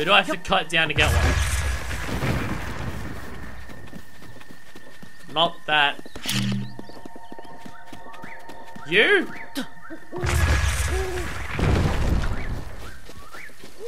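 A bomb explodes with a deep, rumbling boom.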